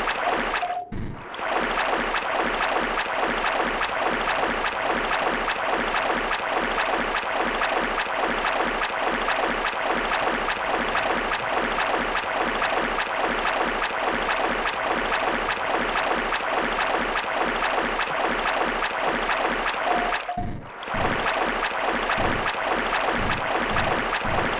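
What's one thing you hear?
Water splashes steadily with each wading step.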